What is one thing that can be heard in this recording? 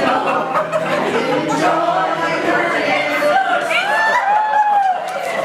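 A group of men and women sing together in a room.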